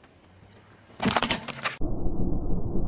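A plastic cartridge cracks and crunches under a car tyre.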